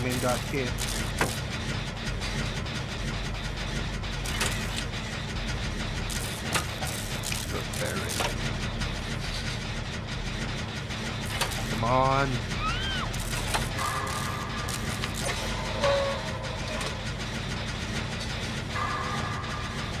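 Metal parts rattle and clank as an engine is repaired.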